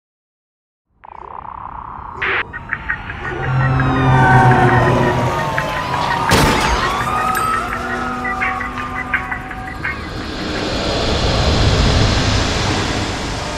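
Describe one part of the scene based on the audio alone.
Pop music with electronic sounds plays.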